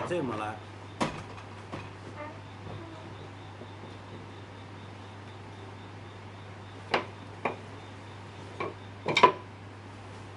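A wooden marking gauge knocks and scrapes against a block of wood.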